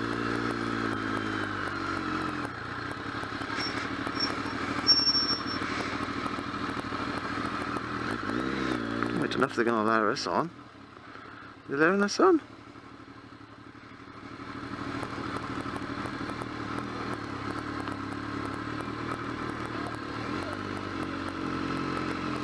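A motorcycle engine hums and rumbles close by.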